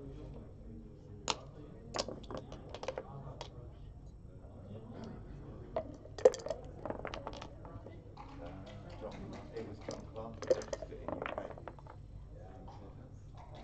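Dice rattle and land on a board.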